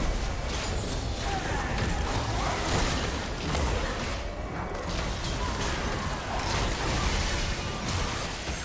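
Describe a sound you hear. Magic spells whoosh and blast in quick bursts.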